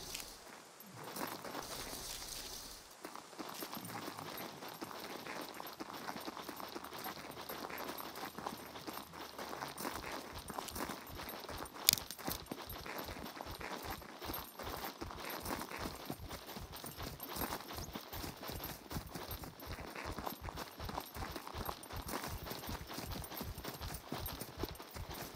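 Footsteps rustle through dry grass at a steady walking pace.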